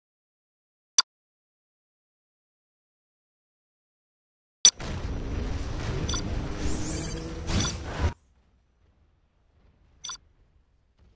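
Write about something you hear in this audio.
A menu button clicks sharply.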